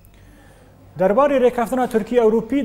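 A man speaks calmly and clearly into a microphone, reading out.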